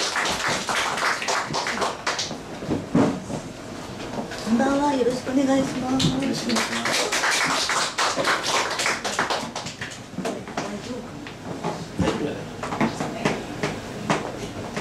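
Several adult men and women talk and laugh close by.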